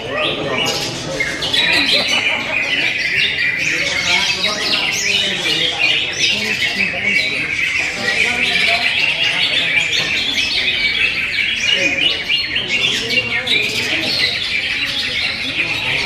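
A caged parrot chirps and chatters busily nearby.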